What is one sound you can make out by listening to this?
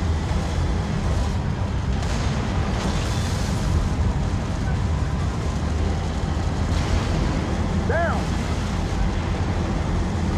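A heavy vehicle engine rumbles low and steady.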